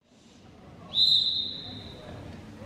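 A whistle blows sharply once.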